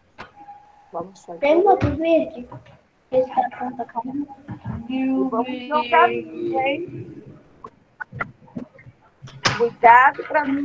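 A young boy talks over an online call.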